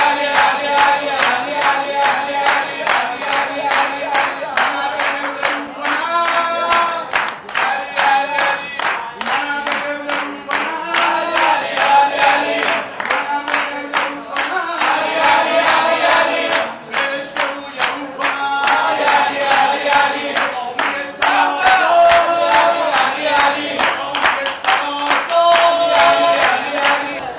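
A young man chants loudly and fervently through a microphone.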